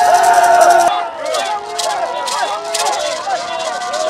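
A shaker rattles in a quick rhythm.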